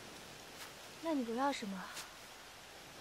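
A young woman speaks softly and lightly nearby.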